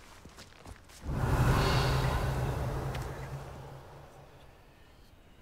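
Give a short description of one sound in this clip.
A magic spell bursts with a deep humming rumble that slowly fades.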